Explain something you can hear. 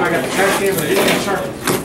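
Packing tape peels off a cardboard box with a ripping sound.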